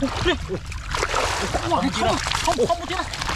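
Mud splashes as a large fish thrashes about.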